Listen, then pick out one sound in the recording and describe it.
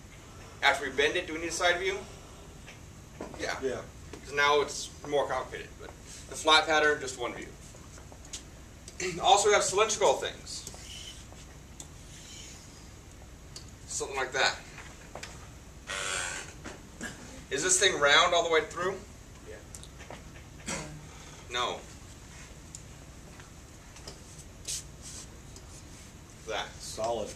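A man speaks calmly in bursts, as if explaining, with pauses between phrases.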